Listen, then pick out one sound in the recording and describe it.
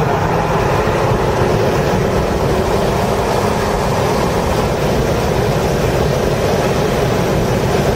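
Wind and tyre noise rush past the car at speed.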